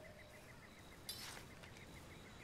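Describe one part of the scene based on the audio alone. A rifle clicks and rattles as it is raised.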